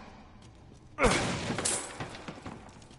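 A wooden crate smashes apart, with planks clattering down.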